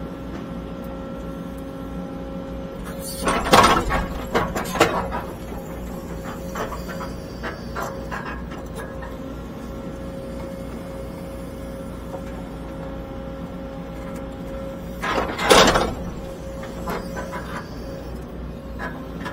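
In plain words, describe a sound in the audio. A diesel engine hums steadily close by.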